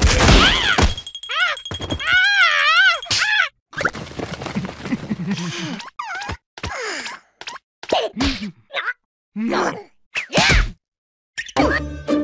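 Cartoon creatures chatter and squeal in squeaky, animated voices.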